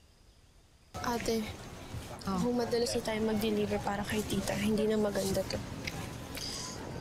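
A teenage girl talks with animation close by.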